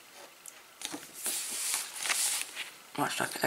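Stiff paper rustles and crinkles as it is handled.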